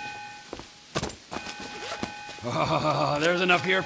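Bundles of paper money thump onto a table and rustle.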